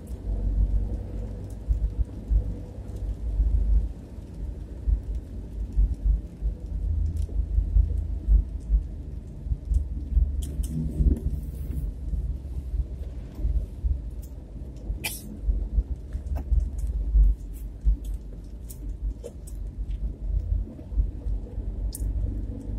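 A car engine rumbles low and steady from inside.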